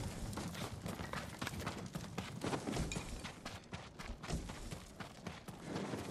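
Footsteps patter quickly across the ground.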